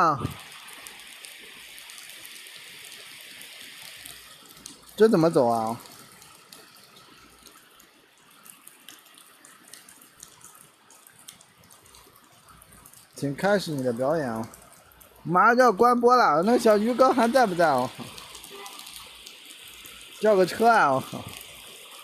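Light rain patters on wet pavement outdoors.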